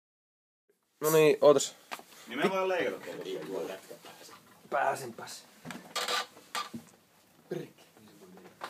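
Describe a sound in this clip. Young men talk and laugh nearby.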